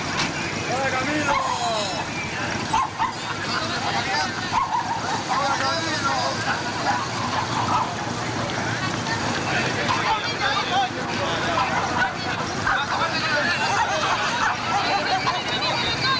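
A crowd of men chatter outdoors close by.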